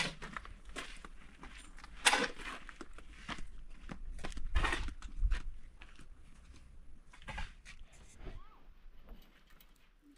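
Footsteps crunch on dry dirt and stones.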